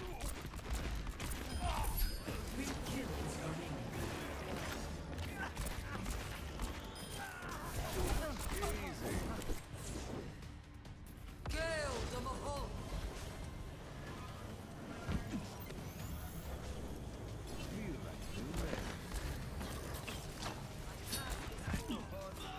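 Revolver gunshots crack in a video game.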